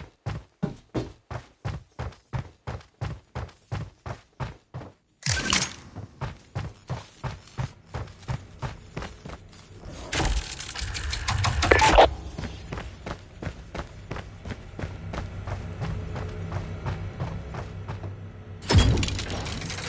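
Footsteps thud quickly and steadily on a wooden floor.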